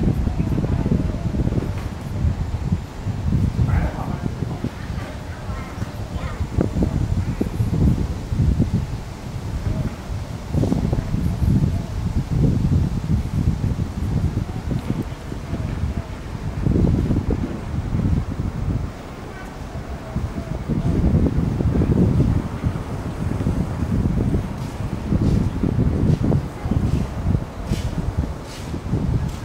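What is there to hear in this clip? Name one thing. Wind gusts outdoors and buffets loudly in low rumbling bursts.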